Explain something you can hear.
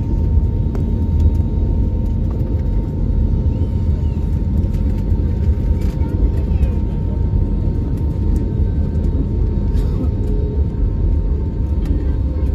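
Aircraft engines roar steadily, heard from inside the cabin.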